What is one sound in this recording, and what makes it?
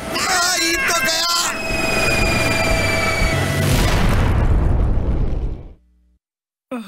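A jet engine roars.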